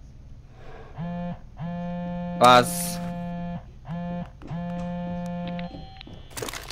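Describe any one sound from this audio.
A phone plays a short electronic tune.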